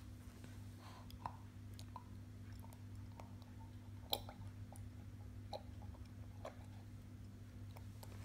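A baby slurps and gulps milk from a glass.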